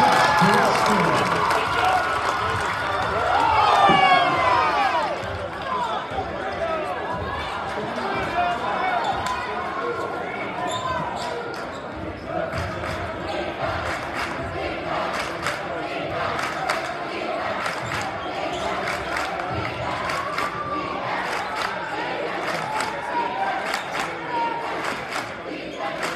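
A crowd cheers and chatters loudly in a large echoing gym.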